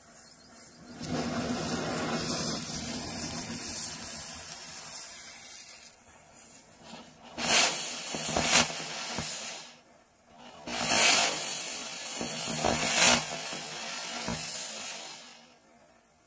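A firework fountain hisses loudly, spraying sparks.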